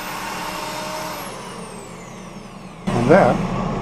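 An electric drill with a sanding pad whines against a spinning wooden bowl.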